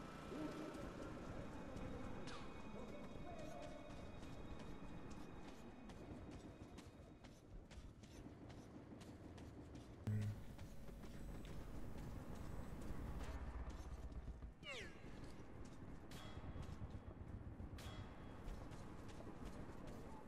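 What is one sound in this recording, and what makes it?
Footsteps crunch slowly over rough ground in a dim, echoing space.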